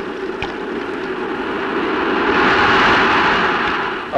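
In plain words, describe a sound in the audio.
Waves wash up onto a sandy shore.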